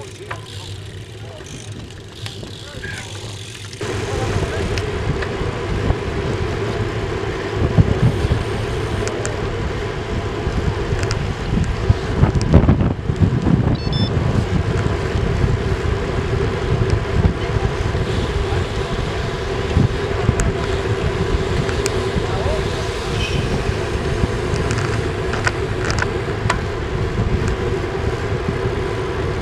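Bicycle tyres hum on the pavement.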